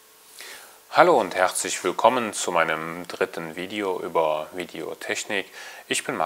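A man speaks calmly and steadily, close to a microphone.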